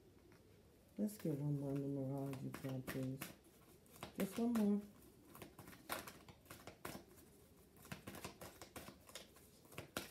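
A plastic package crinkles and rustles in hands.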